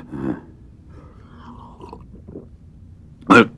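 An elderly man gulps a drink.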